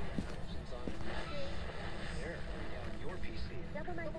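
A young man talks quietly into a microphone.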